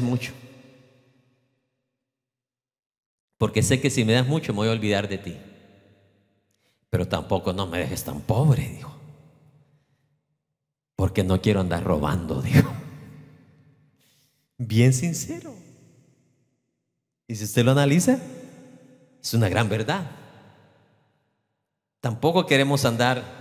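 A middle-aged man speaks with animation into a microphone over loudspeakers in a large echoing hall.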